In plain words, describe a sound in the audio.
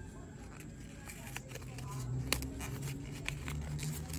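A paper bag rustles close by as fingers handle it.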